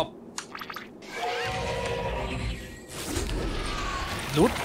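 A burst of energy whooshes and crackles.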